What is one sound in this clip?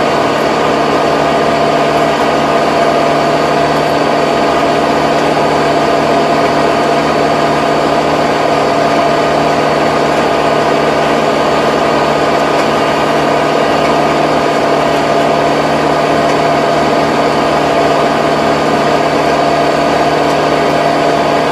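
A rotary tiller churns through soil with a rumbling rattle.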